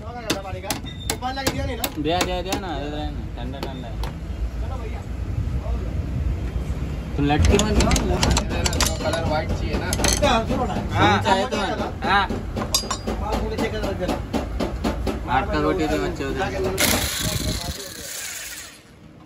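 An impact wrench rattles loudly in short bursts.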